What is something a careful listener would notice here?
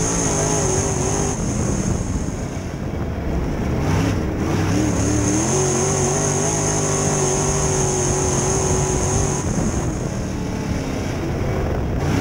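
A race car engine roars loudly up close, its pitch dropping and rising as the driver lets off and accelerates.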